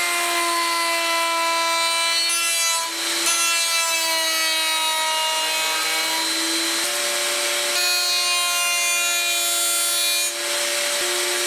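A router bit cuts into wood, its whine wavering under load.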